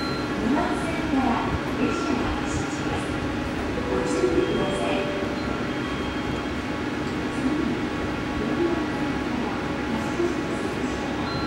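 An electric train idles with a steady low hum.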